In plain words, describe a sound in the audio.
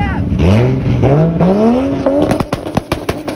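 A Toyota Supra's inline-six engine revs hard through the gears.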